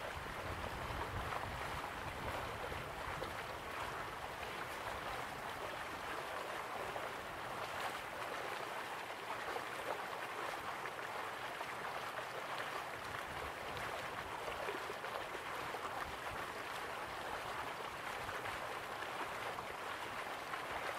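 Water splashes steadily from a small waterfall into a pool.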